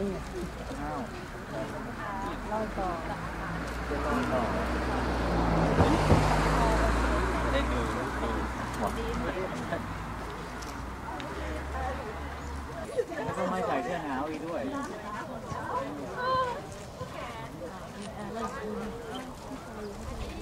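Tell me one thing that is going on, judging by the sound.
A crowd of men and women chatter and murmur nearby outdoors.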